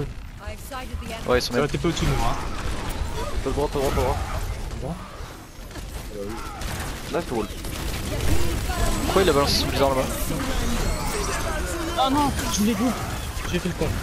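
Heavy weapons fire booms and rumbles in quick bursts.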